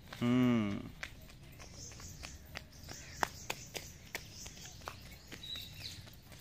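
Small footsteps patter quickly on a paved path.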